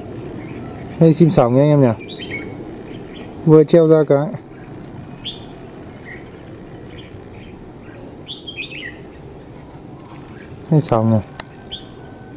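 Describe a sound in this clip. A bird gives loud, wavering calls.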